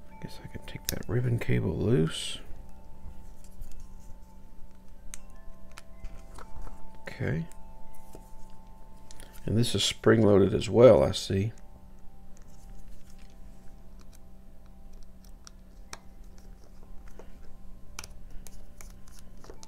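Small plastic parts click and tap as they are handled.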